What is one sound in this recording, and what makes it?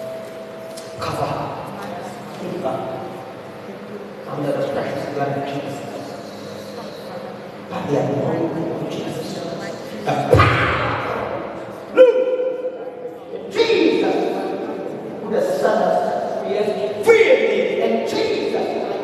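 A man prays loudly and with fervour through a microphone, echoing in a large hall.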